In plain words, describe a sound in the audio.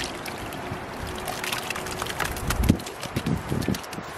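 Dry feed pours from a bucket into a metal bowl.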